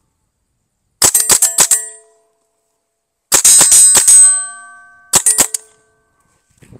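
Gunfire rattles in rapid bursts outdoors.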